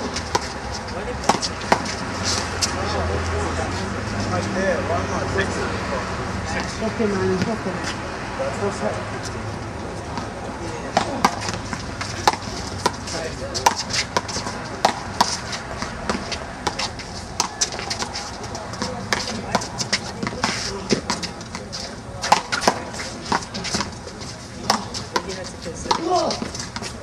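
Sneakers scuff and squeak on the court.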